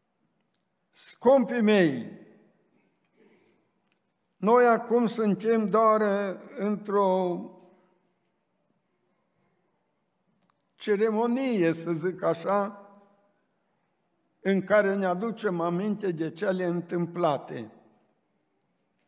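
An elderly man speaks slowly and earnestly into a microphone, with pauses between phrases.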